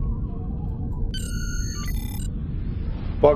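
A starship whooshes into warp with a rising electronic hum.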